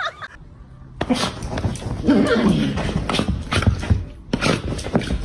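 A small dog snarls and growls.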